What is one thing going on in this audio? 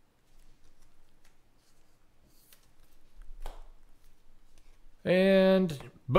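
Trading cards rustle and slide between hands.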